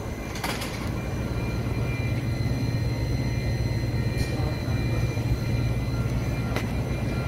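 A parked train's motors hum steadily.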